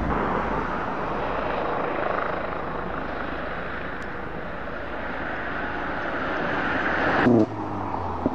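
A pickup truck drives past with a steady engine hum and tyre noise.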